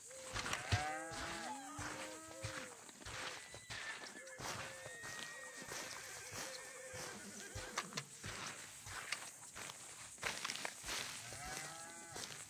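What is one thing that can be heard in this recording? Footsteps crunch on dry dirt and grass.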